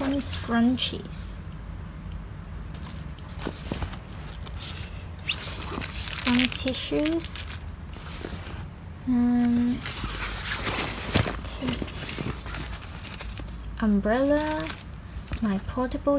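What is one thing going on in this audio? Small objects are handled and knock softly.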